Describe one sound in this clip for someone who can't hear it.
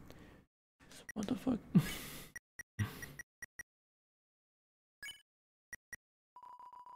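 Short electronic beeps sound one at a time.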